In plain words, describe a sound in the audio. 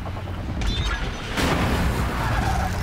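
An arrow whooshes and bursts into flame.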